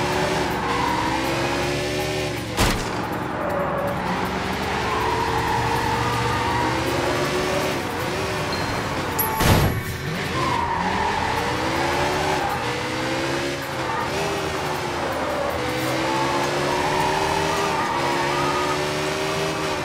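A motorcycle engine revs up and down as it speeds along.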